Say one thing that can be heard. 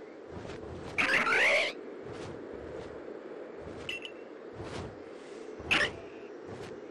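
A large bird screeches loudly.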